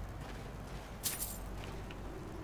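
Coins jingle as a purse is picked up.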